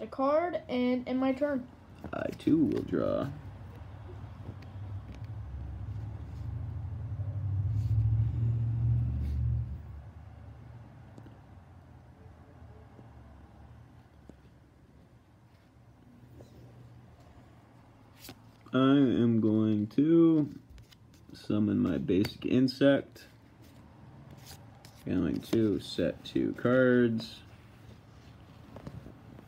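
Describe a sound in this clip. Playing cards rustle softly as they are handled.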